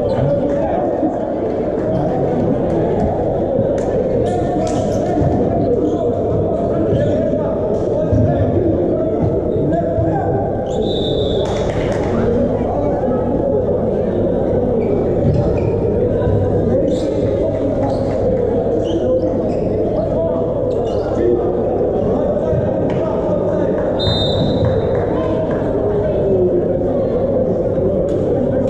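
Volleyball players call out to one another in a large echoing hall.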